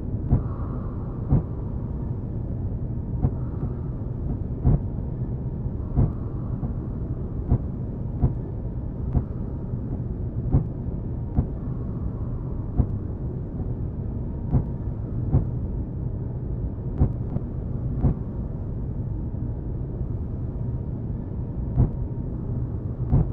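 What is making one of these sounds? A spacecraft's engines hum low and steady.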